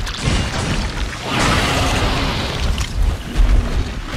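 A large monster roars and growls.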